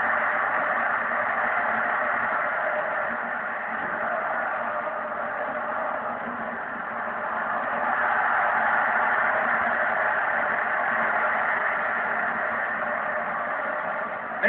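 A stadium crowd roars steadily through a television speaker.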